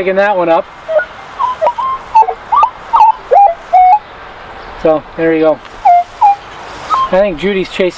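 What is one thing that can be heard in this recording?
A metal detector beeps in short, changing tones.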